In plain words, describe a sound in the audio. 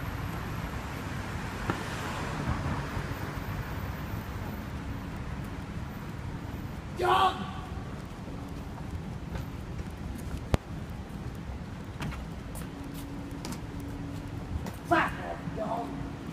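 Footsteps tread on a pavement outdoors.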